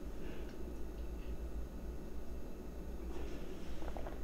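A young woman sips a hot drink with a soft slurp.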